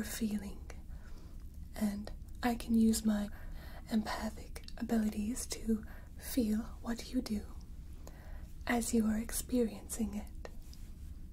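A young woman speaks softly and calmly, close to a microphone.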